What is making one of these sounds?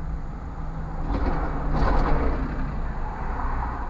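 A bus drives past close by.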